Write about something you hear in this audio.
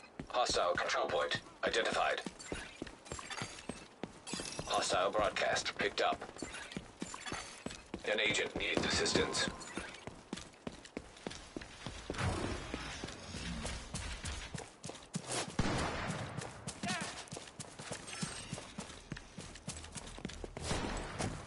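Footsteps run steadily over a hard path and grass.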